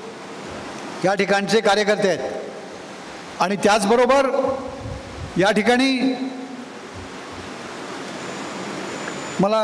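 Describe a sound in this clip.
An elderly man speaks slowly and deliberately into a microphone, in a room with some echo.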